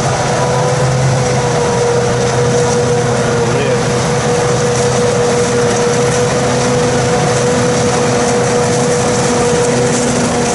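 A forage harvester's engine drones loudly and steadily as it approaches.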